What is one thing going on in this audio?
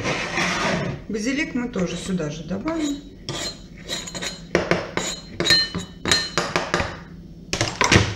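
A knife scrapes chopped herbs off a plastic board into a bowl.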